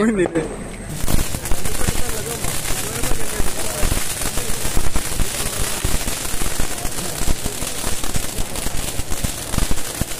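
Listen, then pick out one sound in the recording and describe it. Firecrackers crackle and pop loudly.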